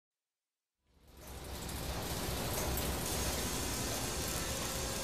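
Clockwork gears turn with a steady whirring and clicking.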